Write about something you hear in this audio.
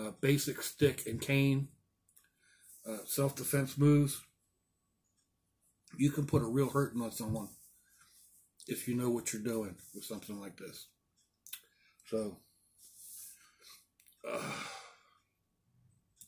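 An elderly man talks calmly and close to a microphone, in short bursts with pauses.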